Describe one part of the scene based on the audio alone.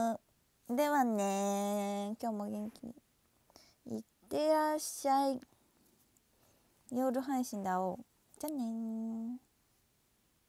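A young woman sings long held notes close to a microphone, then falls silent.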